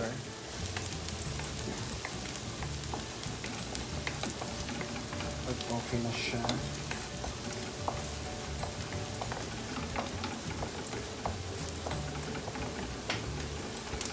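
A wooden spoon scrapes and taps against a pan.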